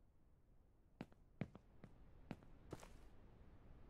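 Footsteps knock on wooden boards.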